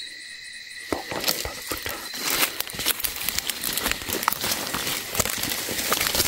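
Leaves and stems rustle close by as a hand brushes through plants.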